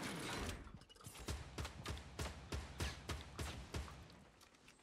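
Footsteps thud quickly on wooden boards.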